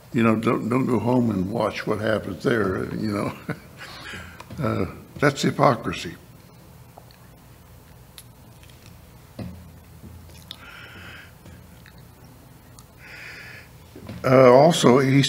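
An elderly man speaks calmly into a microphone, pausing now and then.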